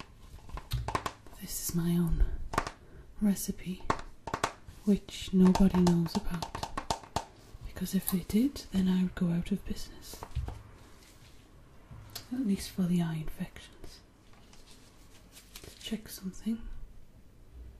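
A young woman whispers softly close to the microphone.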